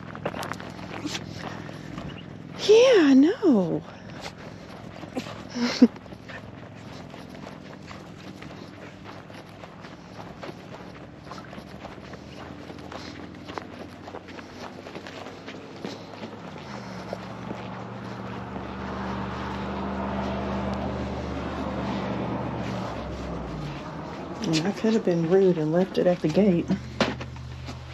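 Footsteps crunch on dry grass and pavement.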